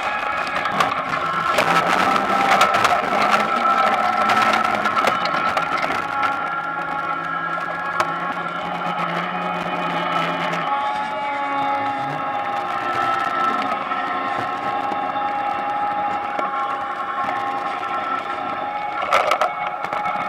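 Potatoes knock and tumble against each other.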